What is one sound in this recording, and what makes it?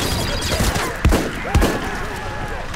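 Rifle shots ring out in short bursts.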